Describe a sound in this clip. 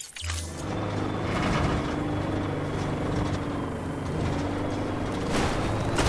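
A small vehicle's engine hums steadily.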